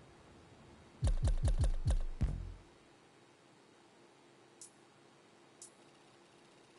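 Short electronic menu clicks and thumps sound as selections change.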